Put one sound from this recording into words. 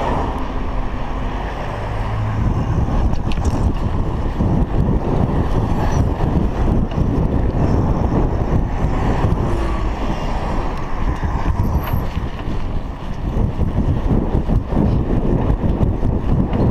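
Wind buffets the microphone steadily.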